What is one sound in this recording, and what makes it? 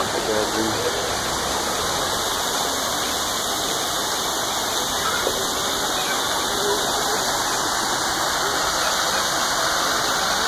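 Water gushes and splashes steadily from a jet in the ground.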